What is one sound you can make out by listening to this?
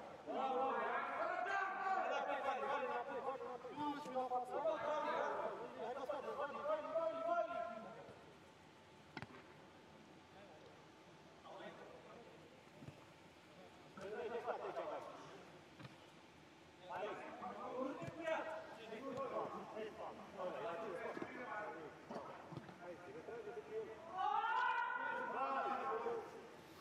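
Men shout and call to each other in an echoing indoor hall.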